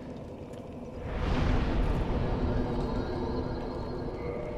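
A deep rushing whoosh swells and slowly fades.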